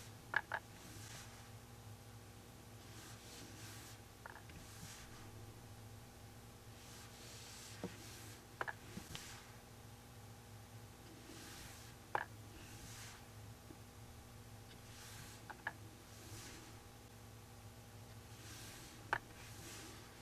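A painting tool taps lightly on a stretched cloth now and then.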